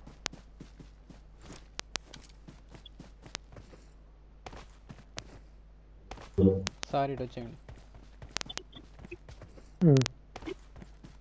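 Footsteps run quickly over gravel and grass.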